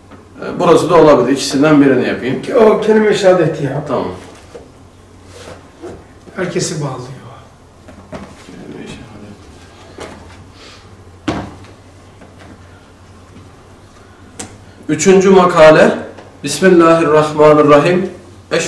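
A man speaks calmly and clearly at close range.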